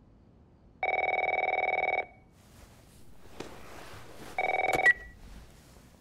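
A telephone rings loudly nearby.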